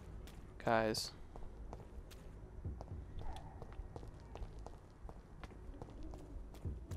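Footsteps tread steadily on wet cobblestones.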